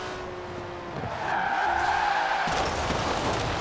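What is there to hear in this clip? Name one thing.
Tyres skid and screech on the road.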